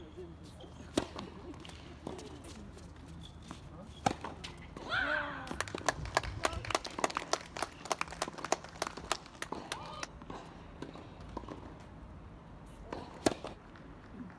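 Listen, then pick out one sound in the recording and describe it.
A tennis ball is struck hard with a racket, with sharp pops.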